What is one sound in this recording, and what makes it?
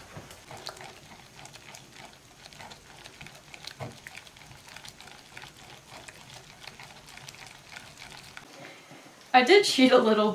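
A whisk scrapes and swishes through thick batter in a metal pot.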